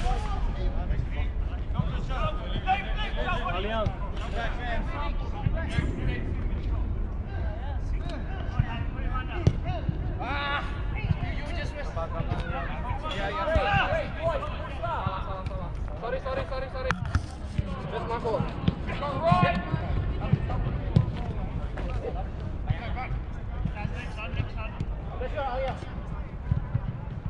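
Men shout and call out to each other outdoors, some close and some across a pitch.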